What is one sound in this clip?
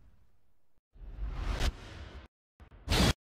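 A bright flash bursts with a whoosh.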